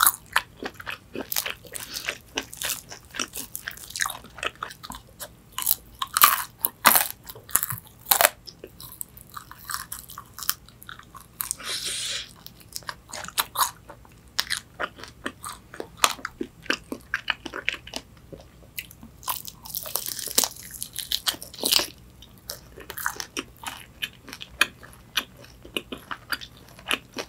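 A young woman chews crunchy fried chicken close to a microphone.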